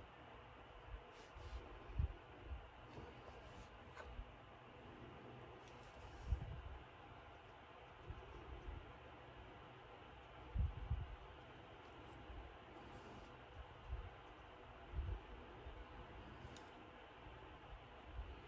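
A brush softly strokes paint onto paper.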